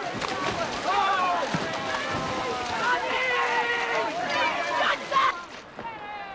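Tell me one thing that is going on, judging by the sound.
Water splashes loudly close by.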